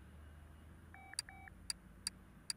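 A short two-note electronic chime sounds.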